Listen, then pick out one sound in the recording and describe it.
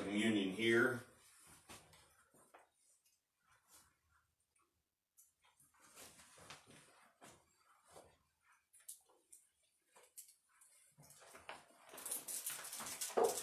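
Footsteps and small knocks sound as someone moves about close by.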